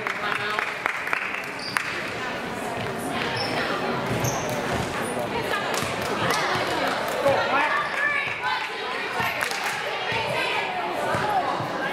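A crowd chatters in a large echoing gym.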